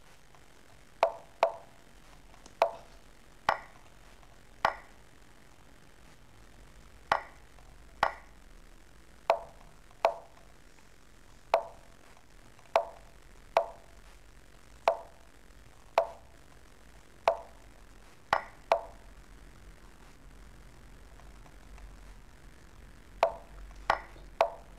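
Short, sharp clicks sound as chess pieces are moved in a computer game, coming every second or so.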